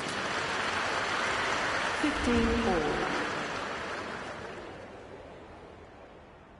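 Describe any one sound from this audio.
A crowd applauds and the applause fades away.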